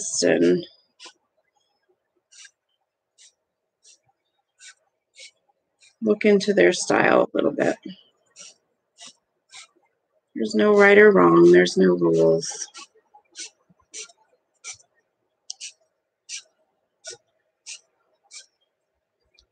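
A felt-tip marker taps and scratches on paper.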